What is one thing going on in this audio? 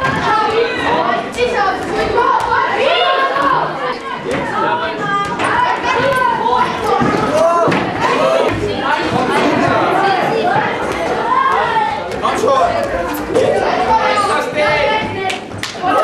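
A ping-pong ball clicks against paddles and a table.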